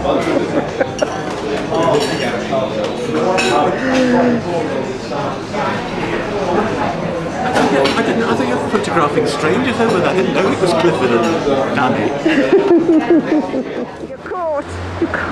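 Older men talk cheerfully nearby.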